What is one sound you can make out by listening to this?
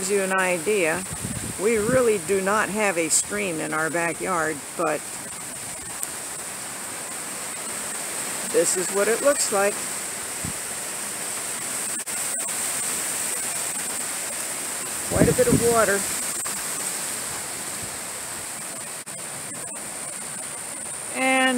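Wind blows steadily outdoors, rustling leaves.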